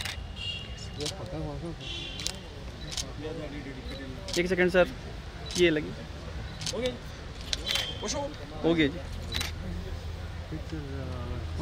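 A man speaks loudly nearby, outdoors.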